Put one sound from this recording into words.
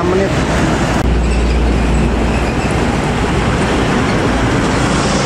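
A bus engine runs close by.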